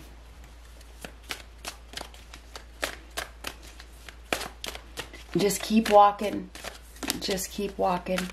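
Playing cards riffle and flick as a deck is shuffled.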